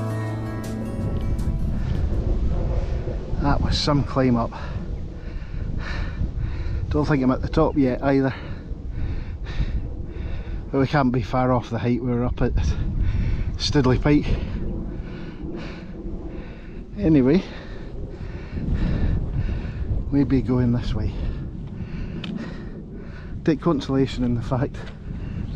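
Wind blows hard across open ground, rumbling against the microphone.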